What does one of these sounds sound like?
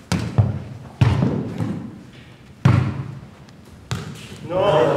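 A ball is kicked with sharp thumps in an echoing hall.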